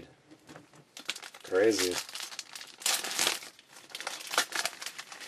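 Trading cards rustle and slide as hands handle them.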